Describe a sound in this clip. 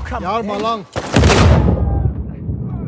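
A revolver fires a loud shot.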